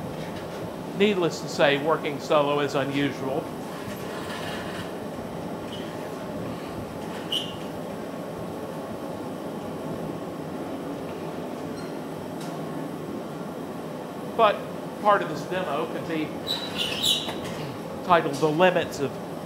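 An elderly man speaks calmly into a nearby microphone.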